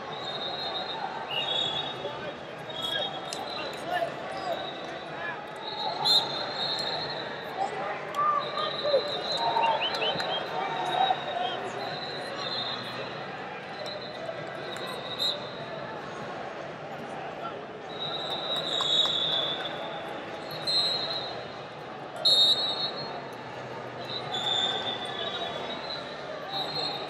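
Sneakers squeak sharply on a mat.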